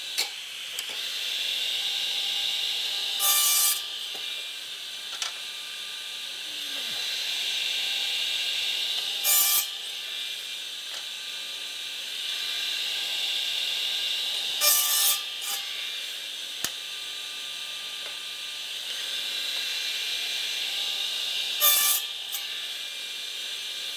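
A power miter saw whines as its motor spins up and winds down again and again.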